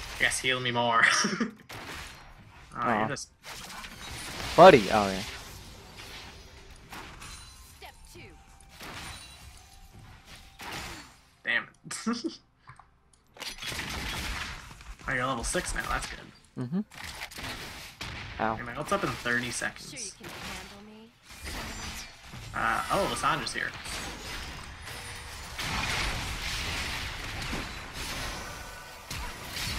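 Video game combat sounds of spells and strikes crackle and whoosh in bursts.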